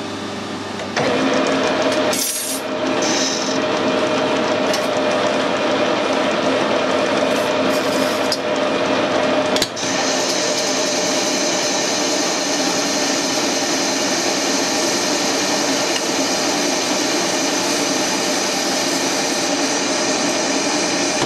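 A lathe tool cuts metal with a steady hiss.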